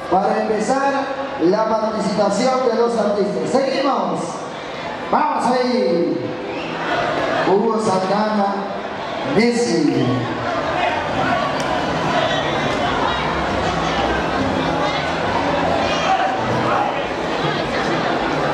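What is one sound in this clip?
A lively crowd chatters and cheers.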